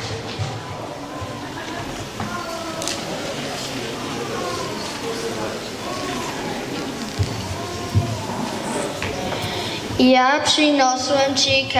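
A young boy speaks through a microphone over loudspeakers in a large room.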